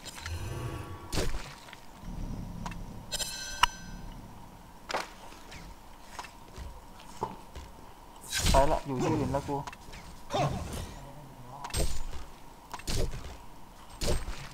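Game spells whoosh and crackle in short bursts.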